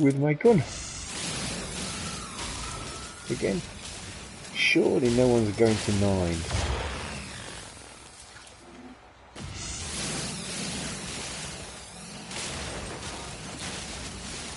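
A mining laser hums and hisses in a steady beam.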